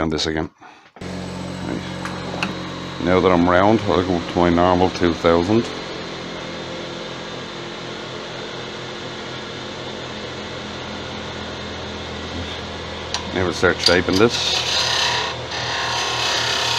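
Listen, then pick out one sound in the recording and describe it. A lathe motor hums steadily as the lathe spins.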